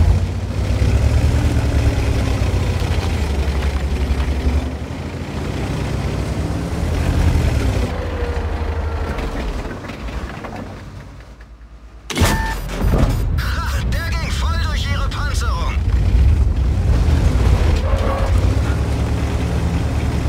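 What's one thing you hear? A tank engine rumbles and clanks as the tank drives.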